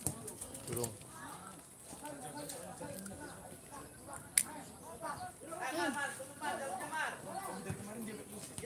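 Men on the sideline talk and call out with animation nearby, outdoors.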